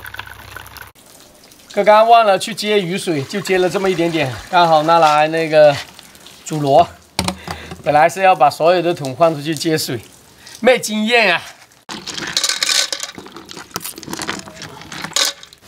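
Water pours and splashes into a pot.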